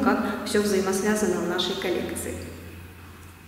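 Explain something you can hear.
A young woman speaks calmly and close to a microphone, her voice fading out into a room's echo.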